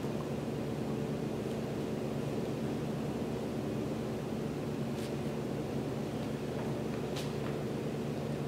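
A man's hands and feet thump softly on a floor mat.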